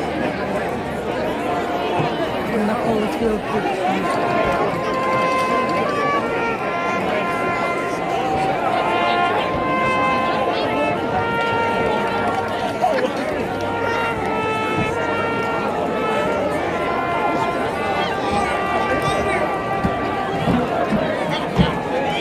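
A marching band plays brass and drums outdoors across a field.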